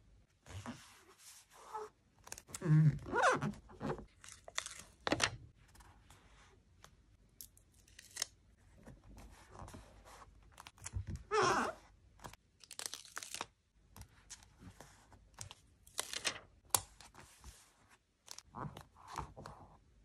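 Fingers press and rub stickers down onto paper with soft scraping.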